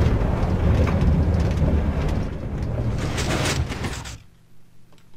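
A cart rumbles and rattles along metal rails.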